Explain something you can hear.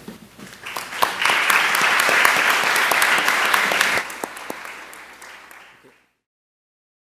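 An audience applauds in a large room, then the applause fades.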